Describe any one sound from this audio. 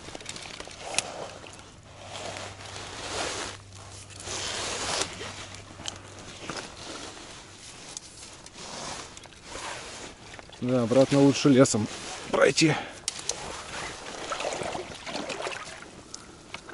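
Water laps gently at the shore.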